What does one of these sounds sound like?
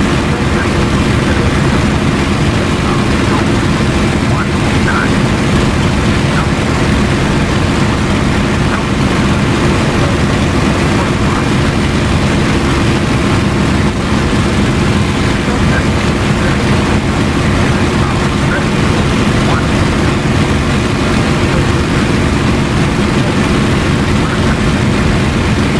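A piston aircraft engine drones loudly and steadily from inside the cockpit.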